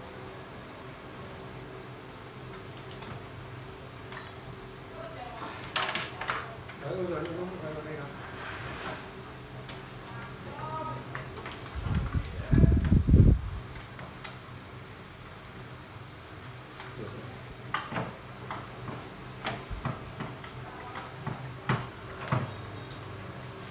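Tools click and clatter against plastic parts.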